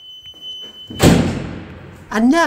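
A heavy door is pushed open with a loud thud.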